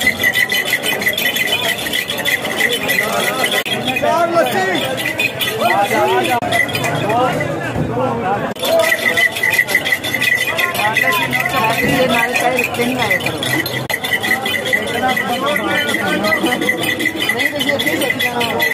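A crowd of men chatters outdoors nearby.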